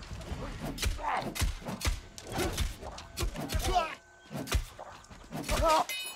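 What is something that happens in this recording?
A sword slashes and strikes a creature.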